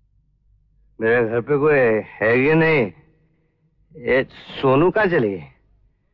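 A young man speaks loudly and with emotion, close by.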